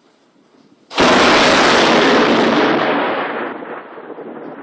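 Thunder cracks loudly close by and rumbles away.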